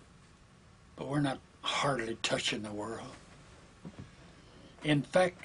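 An elderly man speaks calmly and slowly into a nearby microphone.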